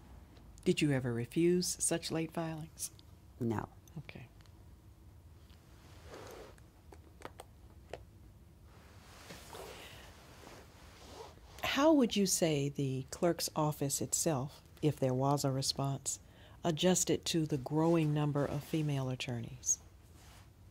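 A middle-aged woman speaks calmly and closely into a microphone.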